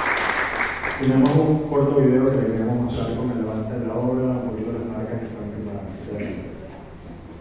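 A young man speaks with animation through a microphone and loudspeakers.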